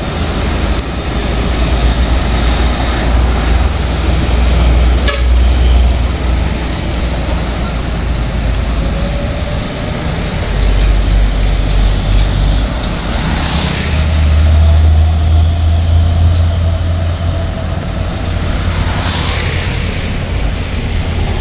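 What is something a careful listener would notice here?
Heavy traffic rumbles steadily past outdoors.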